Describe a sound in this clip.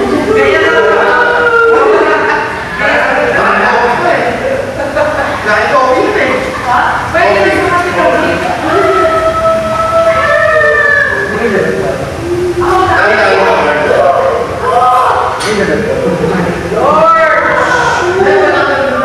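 Several young men talk and laugh loudly, close by.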